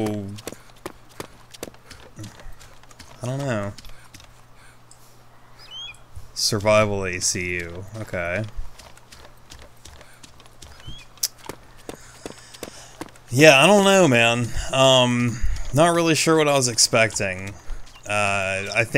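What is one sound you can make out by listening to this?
Footsteps run quickly through dry grass.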